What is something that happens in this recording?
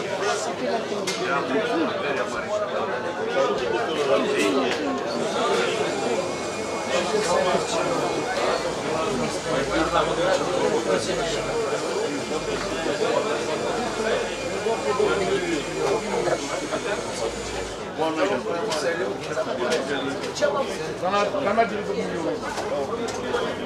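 Many men chat at once nearby.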